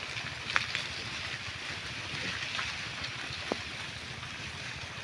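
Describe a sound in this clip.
Piglets rustle through dry leaves and grass.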